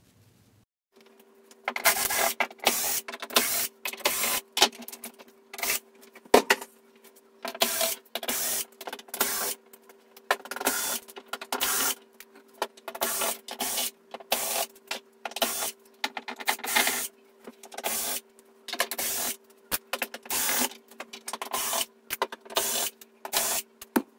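An electric screwdriver whirs in short, rapid bursts.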